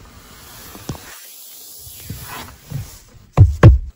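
A hand pats a leather seat.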